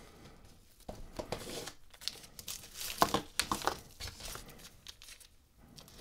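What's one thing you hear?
Small wrapped candies clatter on a wooden table.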